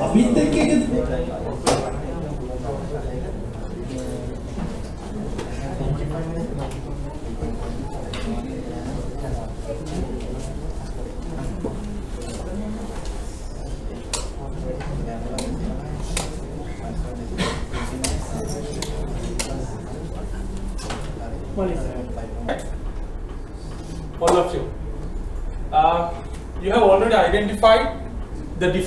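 A man speaks into a microphone over loudspeakers in a large echoing room.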